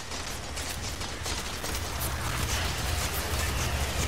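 Energy beams sizzle and hum.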